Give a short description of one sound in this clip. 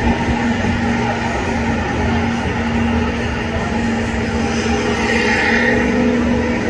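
A car engine roars loudly.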